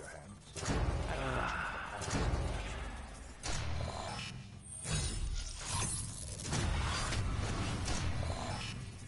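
Bright chimes ring out.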